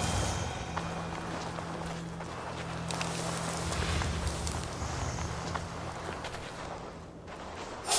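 Soft footsteps pad over dirt and grass.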